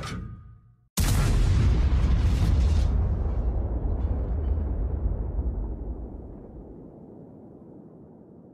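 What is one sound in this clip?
A deep explosion booms and rumbles away.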